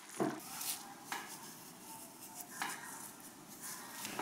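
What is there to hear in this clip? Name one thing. Dry herbs patter softly onto sauce.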